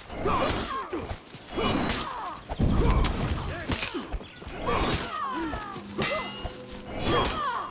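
Metal blades clash sharply.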